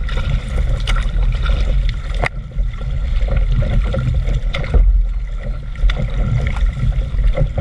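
Water splashes and ripples against the front of a board moving through it.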